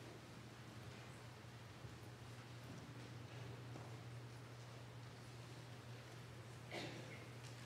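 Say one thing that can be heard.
A crowd of people murmurs softly in a large, echoing hall.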